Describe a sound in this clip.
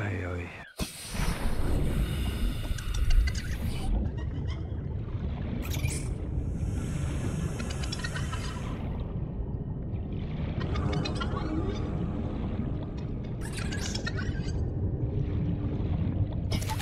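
Deep underwater rumbling goes on steadily.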